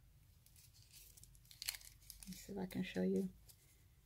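Thin foil crinkles softly between fingers.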